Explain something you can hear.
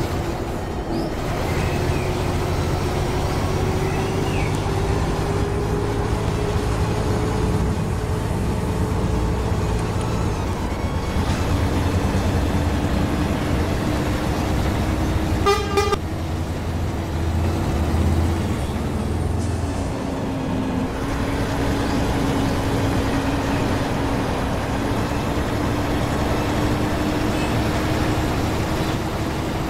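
A bus engine hums steadily while driving at speed.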